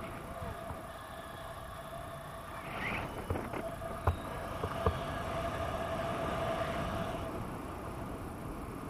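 Wind rushes steadily past the microphone outdoors.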